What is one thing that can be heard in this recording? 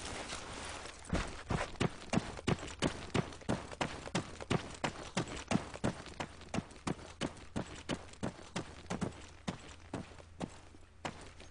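Footsteps crunch steadily over dry grass and gravel.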